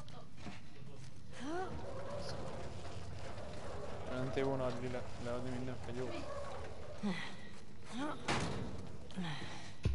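A metal cart rolls and rattles over a hard floor.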